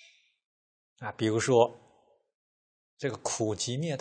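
A middle-aged man speaks calmly and close into a microphone, with short pauses.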